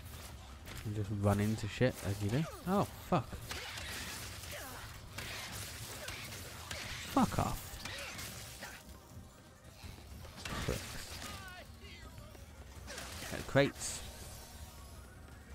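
Game weapons fire with loud blasts and zaps.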